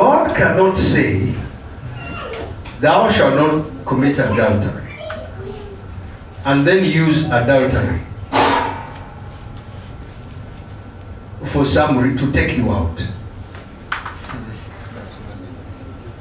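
A man speaks with animation into a microphone, heard through a loudspeaker in a large room.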